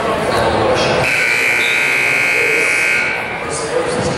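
A referee blows a long whistle.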